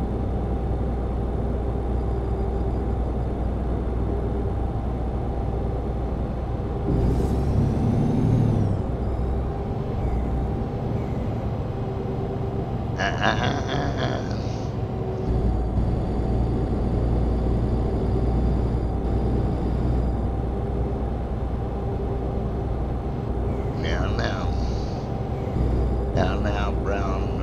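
A truck engine drones steadily at highway speed.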